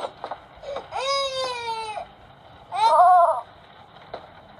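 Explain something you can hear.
A baby's voice babbles and squeals from a small tablet speaker.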